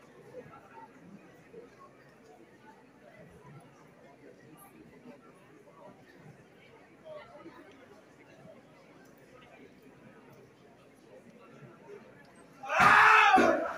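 An audience murmurs quietly in a large hall.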